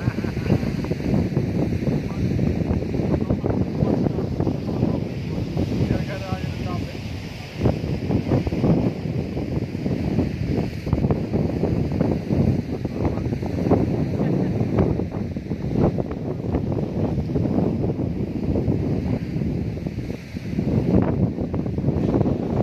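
Waves wash against rocks nearby.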